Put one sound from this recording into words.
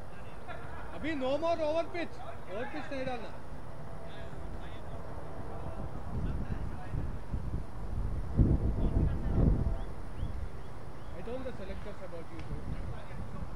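Men call out across an open field in the distance.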